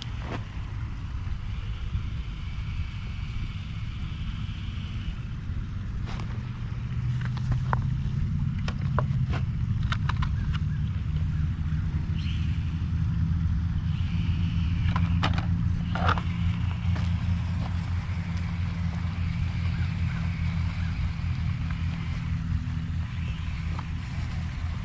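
A small electric motor whirs as a toy truck drives.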